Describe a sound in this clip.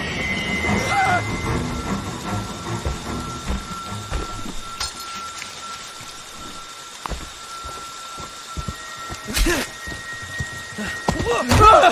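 Heavy footsteps thud on the ground.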